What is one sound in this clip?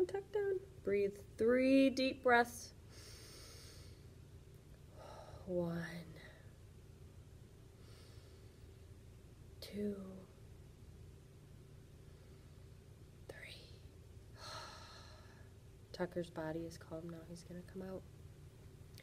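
A young woman speaks gently and expressively close to a microphone, with pauses.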